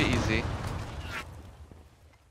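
A young man speaks briefly through a headset microphone.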